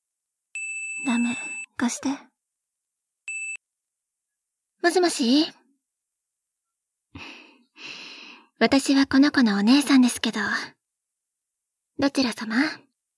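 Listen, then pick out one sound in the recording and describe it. A young woman speaks softly and close to the microphone.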